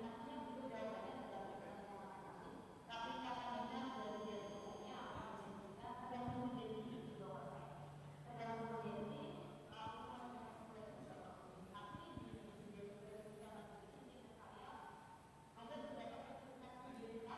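A woman speaks calmly into a microphone, heard through loudspeakers.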